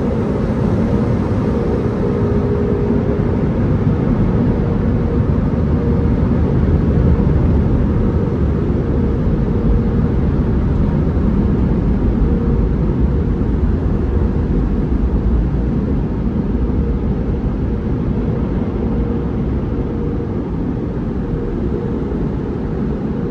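Car wash machinery hums and rumbles steadily all around.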